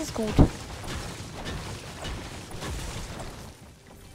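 A pickaxe chops into wood with hollow knocks.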